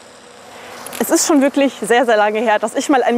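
A young woman speaks brightly into a handheld microphone, close up.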